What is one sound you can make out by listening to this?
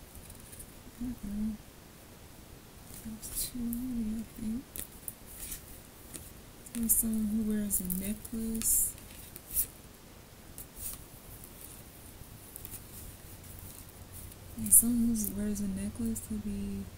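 A young woman speaks calmly and softly close by.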